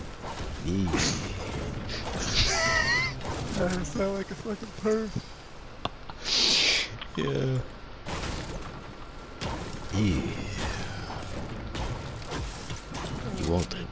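A pickaxe strikes wood and stone with sharp thuds.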